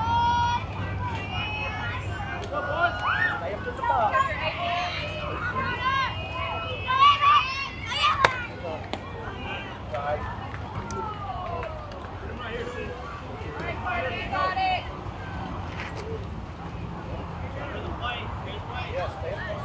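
Young players call out and cheer across an open field.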